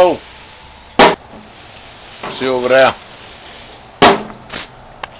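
A metal grill lid bangs shut.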